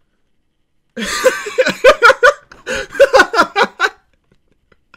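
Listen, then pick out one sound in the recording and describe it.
A young man laughs loudly and heartily into a close microphone.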